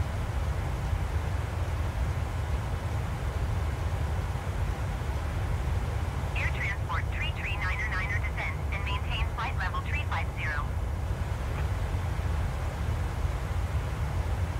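A jet airliner's engines drone with a steady low roar.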